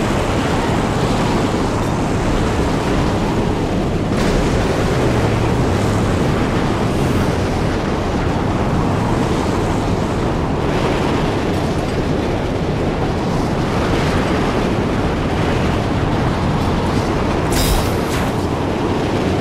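A strong wind howls and roars outdoors.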